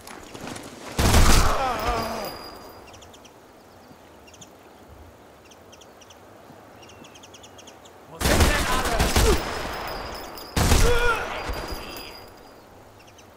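A rifle shot cracks loudly and echoes away.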